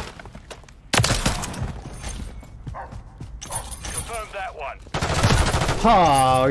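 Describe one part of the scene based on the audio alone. Gunshots crack loudly.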